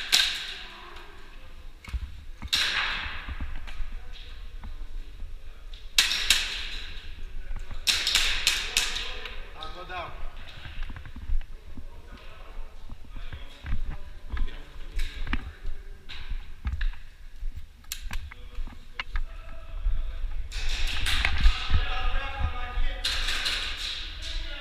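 Airsoft guns fire sharp bursts of shots nearby.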